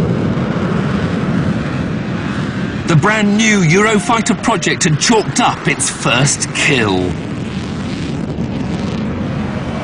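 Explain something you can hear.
A jet engine roars loudly as a fighter plane flies past.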